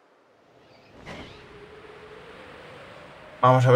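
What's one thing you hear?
Wind rushes steadily past a flying bird.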